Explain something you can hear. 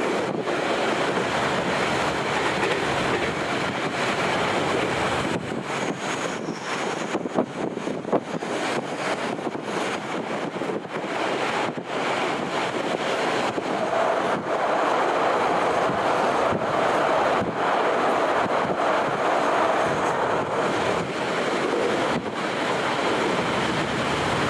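A train rumbles steadily along its rails.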